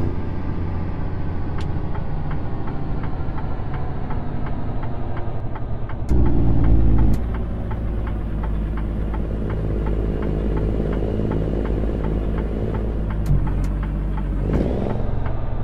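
A truck's diesel engine rumbles steadily while driving.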